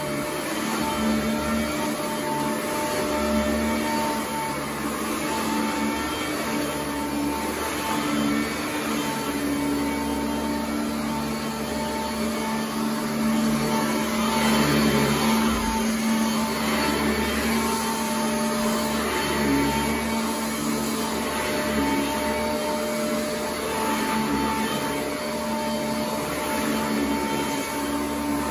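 An upright vacuum cleaner hums steadily and loudly close by.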